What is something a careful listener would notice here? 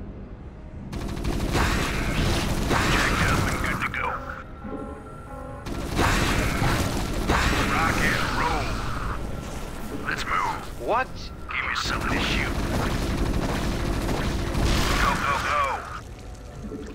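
Rapid gunfire rattles in a noisy battle.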